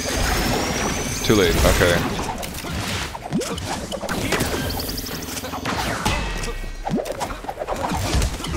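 Upbeat electronic music plays.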